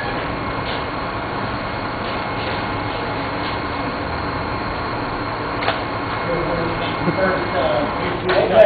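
An electric fan hums steadily close by.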